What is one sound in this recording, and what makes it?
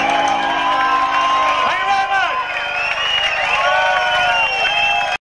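A band plays loud rock music.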